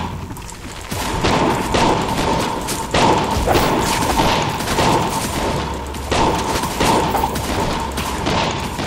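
Weapons strike a creature in quick, repeated blows.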